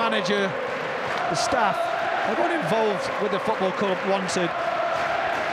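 A crowd of fans sings a loud chant.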